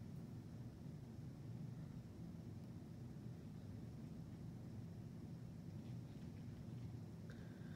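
Wind rustles through tree leaves.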